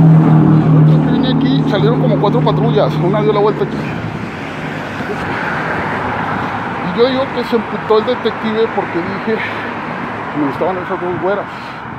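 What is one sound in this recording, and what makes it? A middle-aged man talks close to the microphone outdoors.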